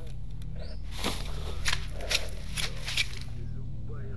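A knife swishes through the air in quick slashes.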